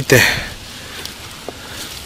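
Hands scrape through loose soil.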